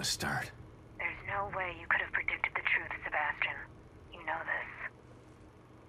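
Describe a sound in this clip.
A woman answers calmly.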